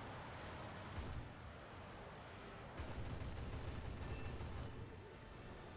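Aircraft cannons fire in rapid bursts.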